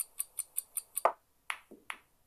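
A pool cue strikes a ball with a sharp clack.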